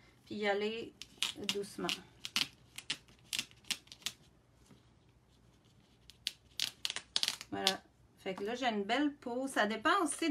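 Plastic film crinkles and rustles under pressing hands.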